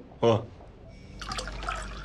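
Liquid pours from a jar into a glass.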